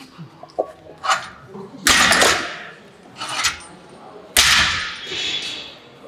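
Weight plates clank and knock against metal.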